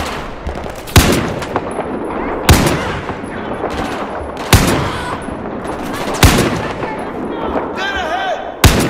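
A sniper rifle fires single loud shots that echo away.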